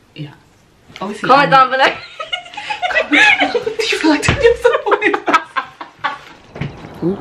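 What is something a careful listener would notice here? Young women laugh loudly close by.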